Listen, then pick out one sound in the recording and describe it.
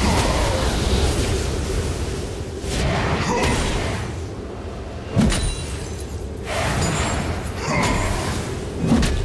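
Magic spells whoosh and burst in a busy video game battle.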